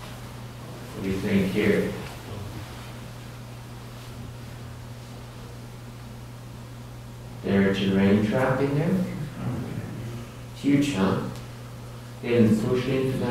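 An adult man speaks calmly in bursts in a large room, heard through a loudspeaker.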